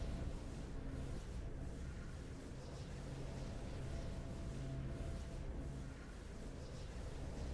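Triumphant fanfare music plays steadily.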